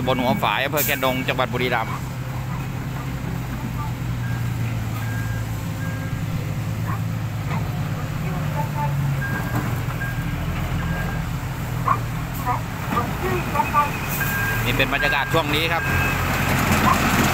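A diesel dump truck idles.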